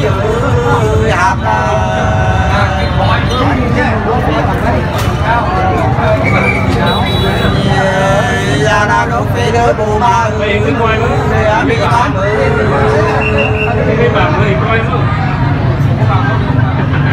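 A middle-aged man sings loudly with animation nearby.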